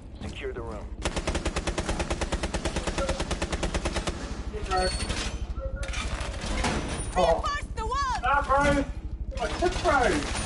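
A metal wall panel rattles and clanks as it is locked into place.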